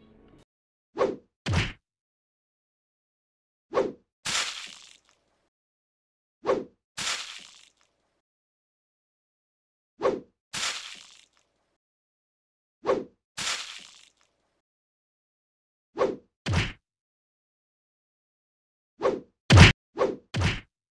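Heavy blows strike in a fight, coming in short pairs with quiet gaps between.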